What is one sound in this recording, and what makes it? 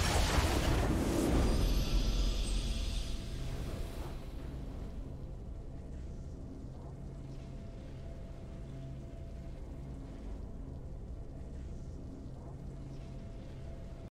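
A triumphant game fanfare swells and then fades into a low hum.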